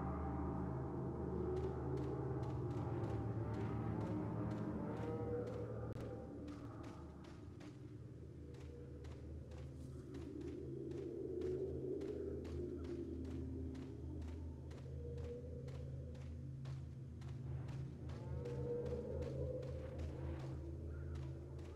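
Footsteps crunch steadily on dirt.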